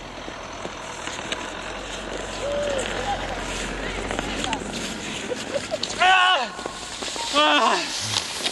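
Skis swish and scrape over snow, growing louder as a skier approaches.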